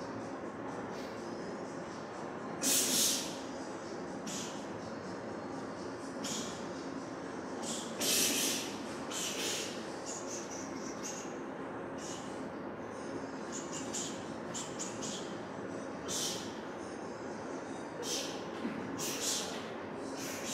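Young men exhale sharply with each punch.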